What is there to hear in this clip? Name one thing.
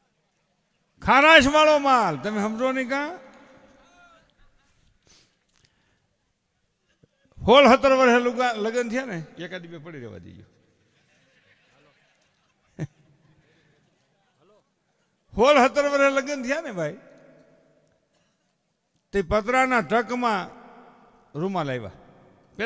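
An elderly man sings loudly through a microphone in long drawn-out phrases with pauses between them.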